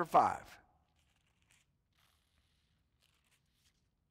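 Pages of a book rustle.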